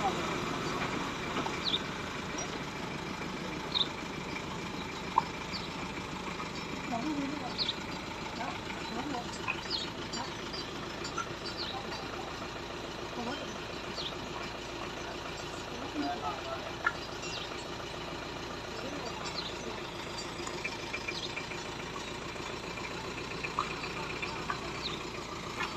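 Men and women talk and call out to each other outdoors.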